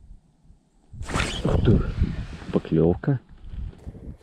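Clothing rustles loudly close by.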